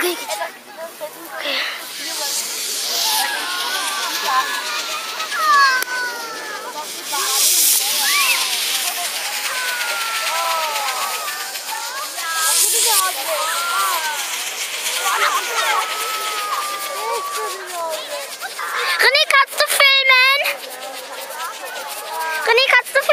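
Firework fountains hiss and crackle steadily, outdoors.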